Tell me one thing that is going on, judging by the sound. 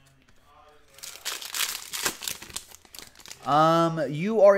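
Foil wrapping crinkles and tears as a pack is opened.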